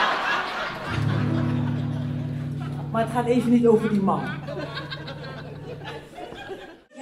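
A guitar chord rings out and slowly fades.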